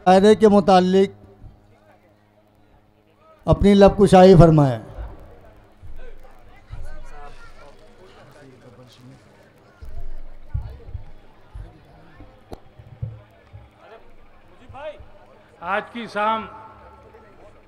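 A middle-aged man recites loudly and expressively through a microphone and loudspeakers.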